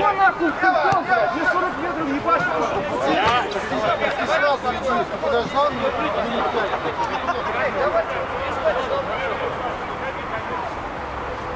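Men shout and call to each other across an open outdoor pitch.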